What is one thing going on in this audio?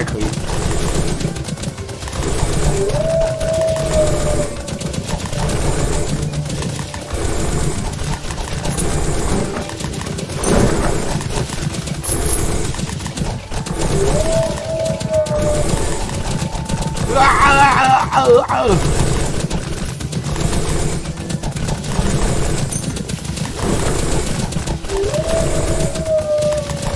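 Game battle effects clash and burst rapidly.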